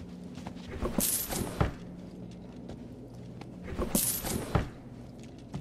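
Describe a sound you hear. Jewellery clinks and rattles as a hand picks it up.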